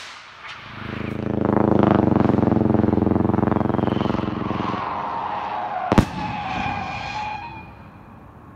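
A firework roars and whooshes up into the sky.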